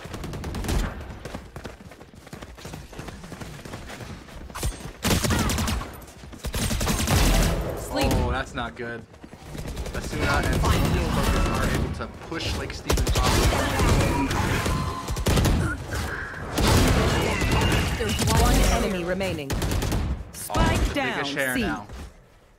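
Rifles fire in rapid bursts of sharp shots.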